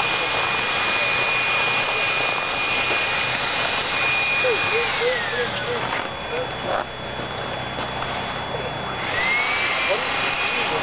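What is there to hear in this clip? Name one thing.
A power tool grinds steadily against ice, with a high whine that drops and rises.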